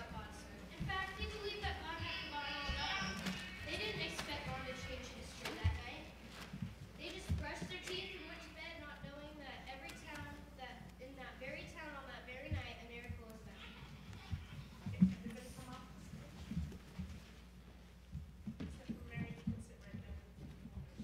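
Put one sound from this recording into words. Young children speak lines through a microphone.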